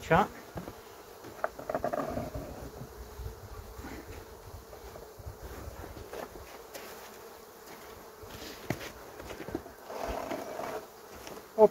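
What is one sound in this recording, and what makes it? Wooden frames knock and scrape against a beehive.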